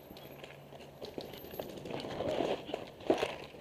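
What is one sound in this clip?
Clothing scrapes and rustles against an inflatable bunker.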